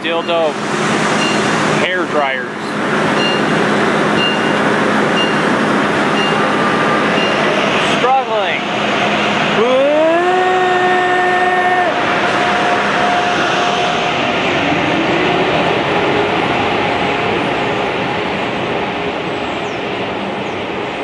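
A train rumbles and clatters steadily along the track.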